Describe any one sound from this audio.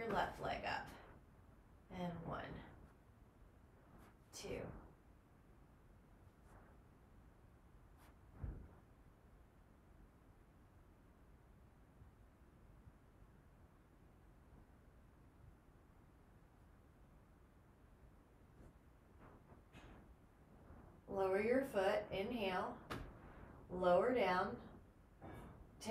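A woman speaks calmly and softly close by, giving instructions.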